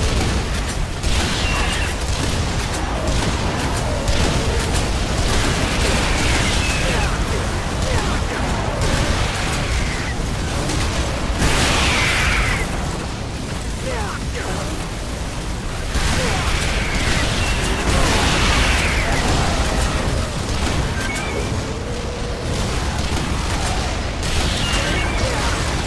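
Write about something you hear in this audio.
Giant creatures screech.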